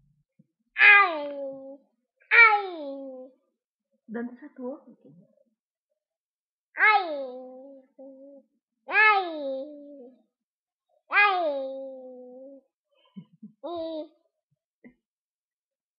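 A toddler squeals and babbles playfully, close by.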